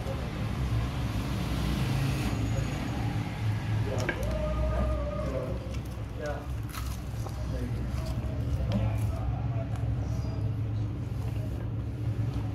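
A man chews crispy fried chicken close to the microphone.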